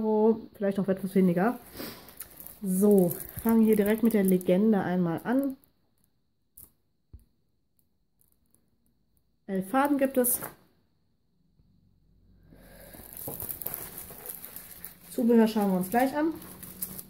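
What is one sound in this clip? A plastic wrapper crinkles and rustles as it is handled.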